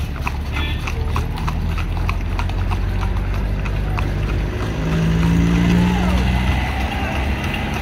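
A small pickup truck engine drives past.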